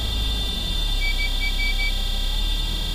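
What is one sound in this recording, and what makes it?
A ticket terminal beeps several times in quick succession.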